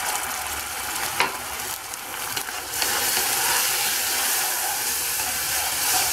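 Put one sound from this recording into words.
Hot oil and sauce sizzle loudly in a pan.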